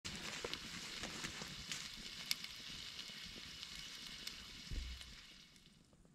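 A wood fire crackles and pops close by.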